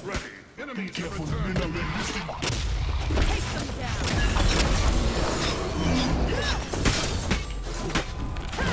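A deep rumbling game effect swells and fades.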